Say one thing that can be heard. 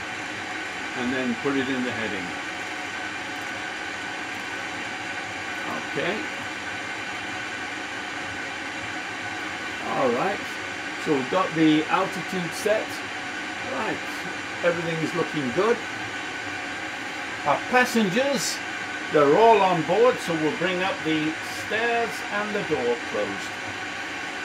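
An elderly man speaks calmly nearby, explaining.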